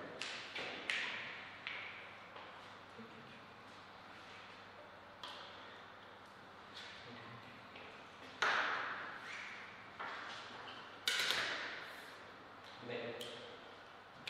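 A ping-pong ball clicks sharply off paddles and a table in a reverberant hall.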